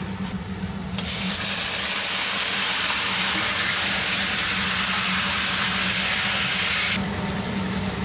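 Meat sizzles loudly in a hot pan.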